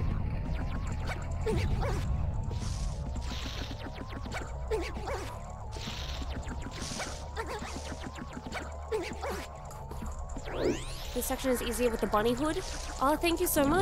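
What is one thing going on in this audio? Game music plays with a bright repeating melody.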